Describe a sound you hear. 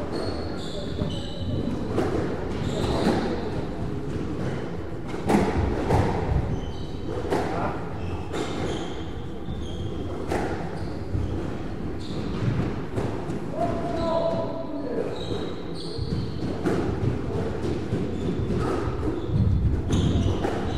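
Rubber-soled shoes squeak on a wooden floor.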